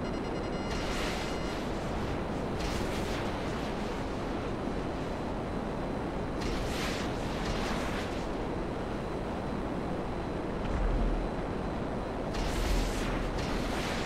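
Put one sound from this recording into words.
Missiles whoosh away in short bursts.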